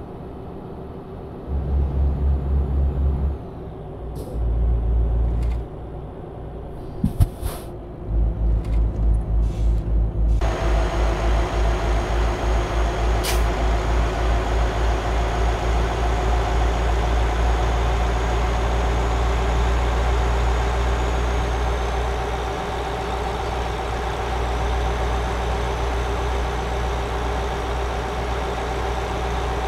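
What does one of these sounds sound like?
A truck engine rumbles and throbs steadily.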